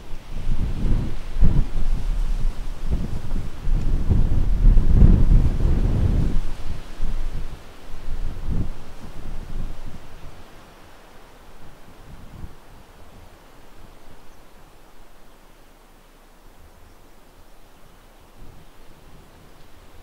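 A train rumbles slowly past on the rails.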